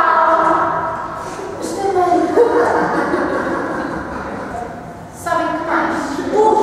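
A woman sings loudly in a room with some echo.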